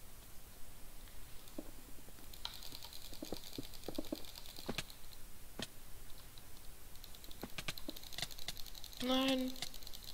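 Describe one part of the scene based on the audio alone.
Blocks are struck with quick, sharp taps.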